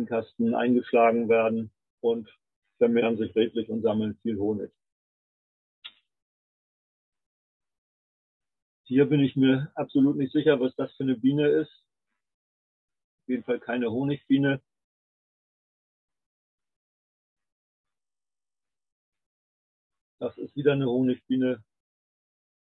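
An older man speaks calmly through an online call, pausing often.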